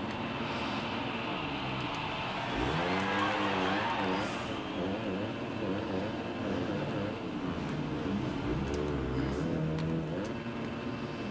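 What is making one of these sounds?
A motorcycle engine revs and whines loudly, rising and falling in pitch.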